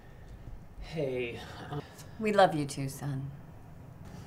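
A middle-aged woman speaks nearby.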